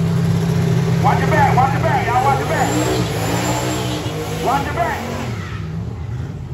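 A crowd cheers and shouts in the distance.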